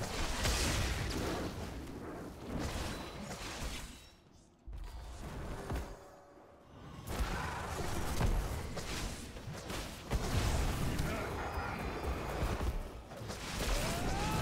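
Fantasy battle sounds of clashing blows and magic blasts ring out.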